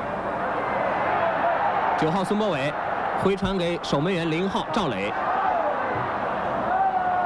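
A stadium crowd murmurs and roars steadily in the distance.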